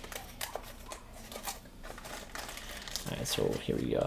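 Plastic wrapping rustles inside a box.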